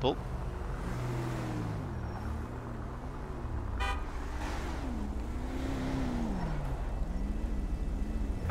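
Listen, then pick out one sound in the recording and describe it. Car tyres roll over asphalt.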